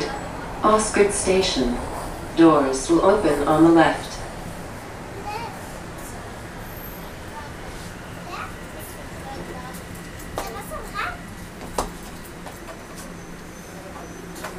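A subway train rumbles along steadily.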